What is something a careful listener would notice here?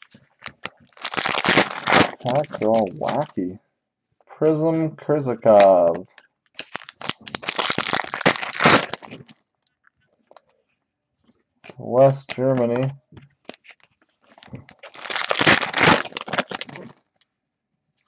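A foil wrapper crinkles and tears in short bursts.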